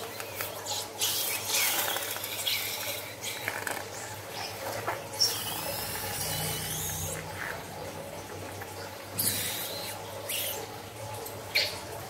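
Liquid splashes and gurgles as a balloon empties into a bowl.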